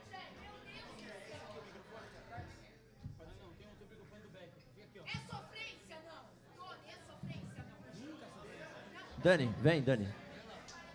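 Several men talk casually nearby.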